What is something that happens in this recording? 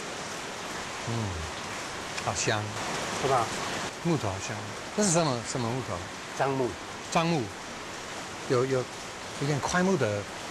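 Another man answers calmly, close by.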